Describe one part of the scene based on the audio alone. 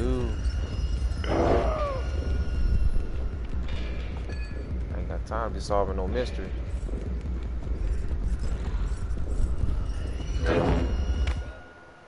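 A creature groans and moans in a low voice.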